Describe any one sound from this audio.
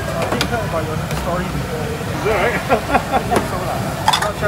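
A metal ladle clinks against a pot.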